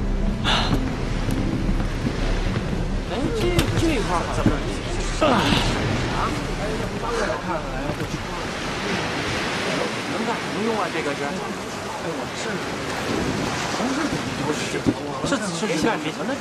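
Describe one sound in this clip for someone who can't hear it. A young man speaks cheerfully.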